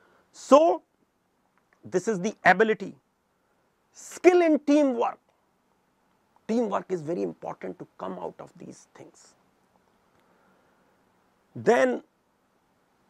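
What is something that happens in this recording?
An older man speaks calmly and clearly into a close microphone, in short phrases with pauses.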